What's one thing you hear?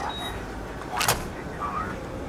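A pistol clanks down onto a metal counter.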